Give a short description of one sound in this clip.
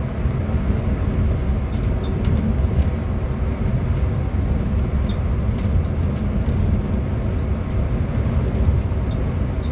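Small parts in the bus rattle and tick now and then.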